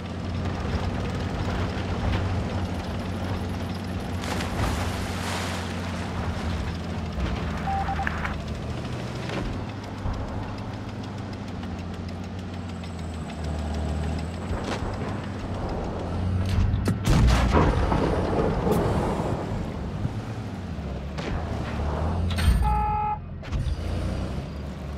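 A tank engine rumbles steadily.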